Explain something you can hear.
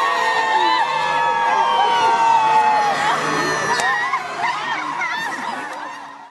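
A large crowd of women wails and cries out together outdoors.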